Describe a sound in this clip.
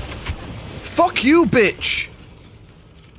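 A man exclaims loudly into a microphone, close by.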